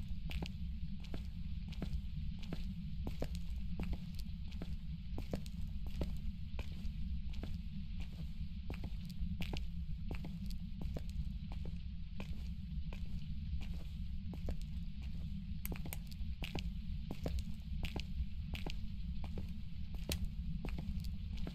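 Footsteps walk quickly and steadily across a tiled floor.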